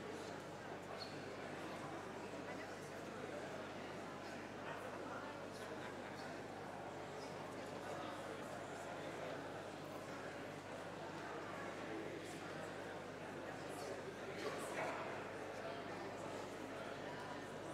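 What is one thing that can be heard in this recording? A crowd of adults murmurs and chatters quietly in a large echoing hall.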